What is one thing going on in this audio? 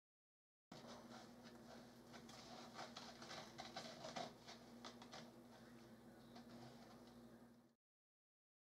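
Thin plastic film crinkles and rustles under fingers.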